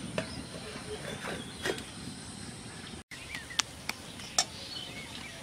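A metal lid clatters onto a metal pan.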